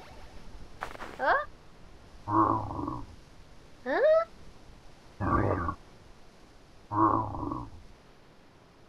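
Short chirpy voice blips sound in quick bursts.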